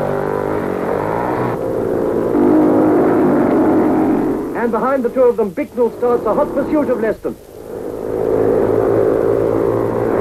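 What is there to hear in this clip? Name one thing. A racing car engine roars loudly as the car speeds past.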